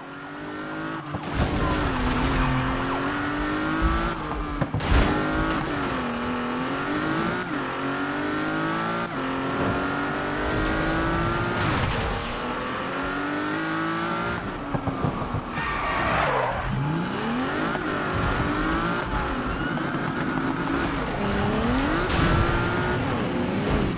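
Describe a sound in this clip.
A car engine roars and revs up and down as the car races at high speed.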